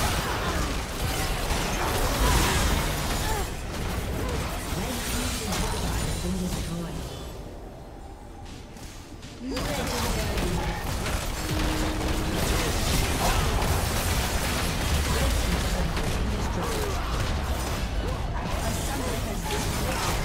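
Magical blasts and impacts crackle and boom in a busy fight.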